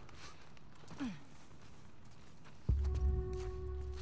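Footsteps pad across wet ground outdoors.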